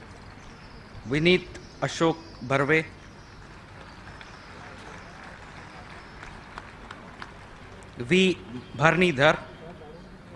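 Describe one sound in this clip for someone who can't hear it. A man speaks in short loud bursts.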